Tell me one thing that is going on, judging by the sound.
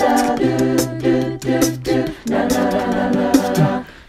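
A group of young men and women sing together.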